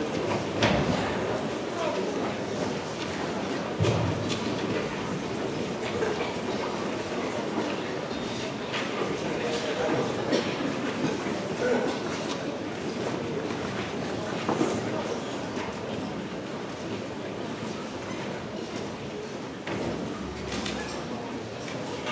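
A large crowd chatters at a distance.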